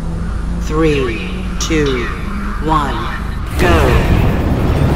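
Countdown beeps sound three times, then a higher start tone.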